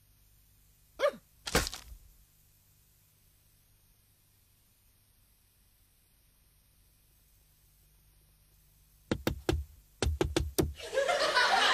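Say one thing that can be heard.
A cartoon crow thumps down onto a wooden floor.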